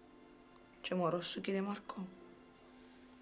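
A young woman speaks quietly and closely.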